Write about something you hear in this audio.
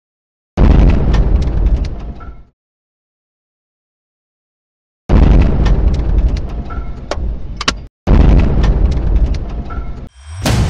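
A huge explosion booms and rumbles, then slowly dies away.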